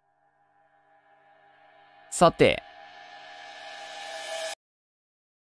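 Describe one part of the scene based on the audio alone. A shimmering electronic tone swells louder and louder, then cuts off abruptly.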